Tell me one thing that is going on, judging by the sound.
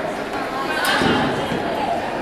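Feet thump on a wooden balance beam.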